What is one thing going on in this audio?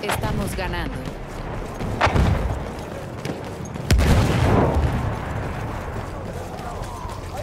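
Footsteps crunch quickly over rubble.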